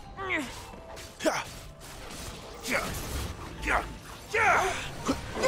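Blades whoosh and clash in quick, sharp bursts.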